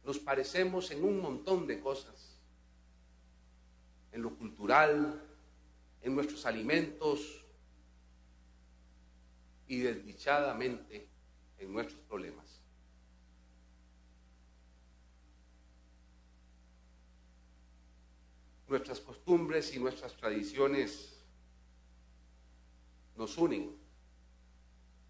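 A middle-aged man speaks slowly and formally into a microphone, with long pauses.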